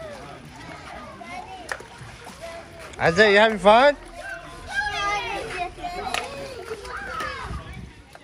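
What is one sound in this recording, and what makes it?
Water splashes in a shallow pool.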